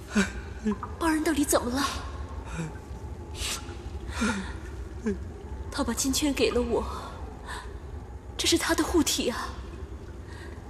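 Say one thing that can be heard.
A young woman speaks softly and with emotion.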